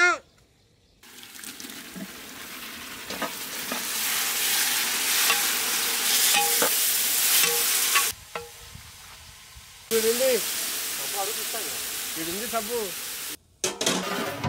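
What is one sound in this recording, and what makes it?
A pot of food bubbles and hisses over a fire.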